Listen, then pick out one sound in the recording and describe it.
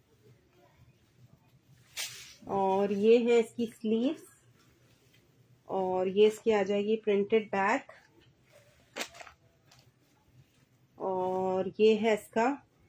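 Cloth rustles softly as it is unfolded and smoothed.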